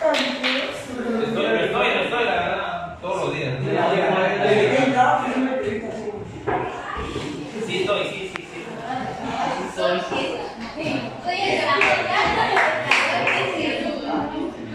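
A young man talks to a group.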